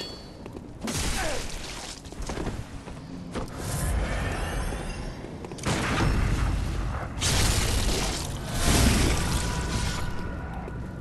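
Blades slash and strike flesh in a hard fight.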